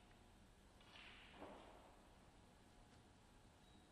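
A cue tip strikes a snooker ball with a sharp click.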